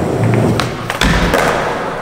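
A skateboard lands with a loud clack.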